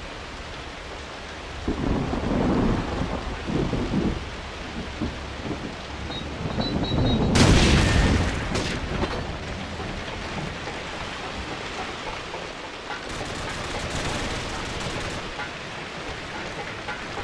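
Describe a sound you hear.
Rain falls steadily.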